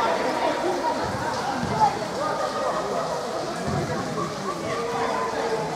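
Young players shout to each other across a large echoing hall.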